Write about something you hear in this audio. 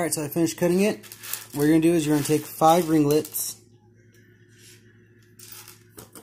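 Small metal rings clink and slide against each other on a wooden surface.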